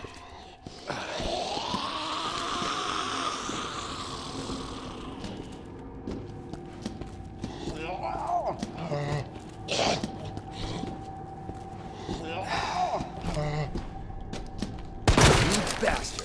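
A zombie groans and moans.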